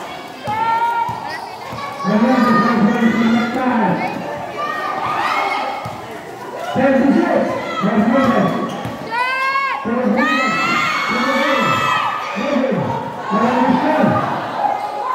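A crowd of young spectators shouts and cheers nearby.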